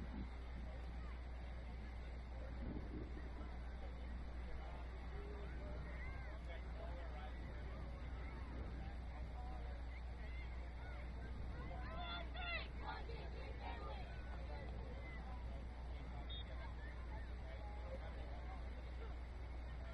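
Young players shout to each other far off across an open field.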